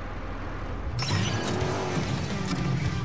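A car engine starts and revs loudly.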